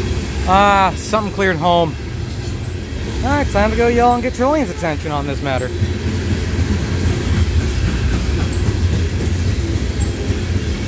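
Freight cars rumble past steadily on the rails close by.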